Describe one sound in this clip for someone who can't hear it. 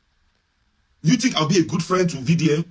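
A man speaks with animation, close to the microphone.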